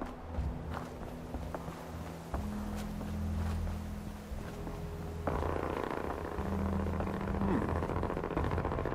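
Footsteps crunch on rubble and pavement.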